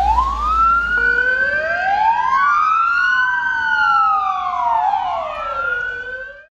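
An ambulance siren wails loudly close by, sliding up and down.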